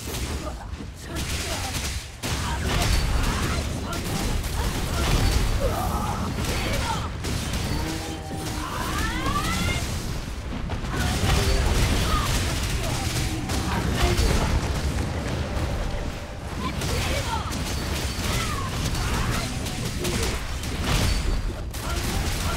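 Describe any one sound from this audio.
Blades slash and hit in rapid bursts.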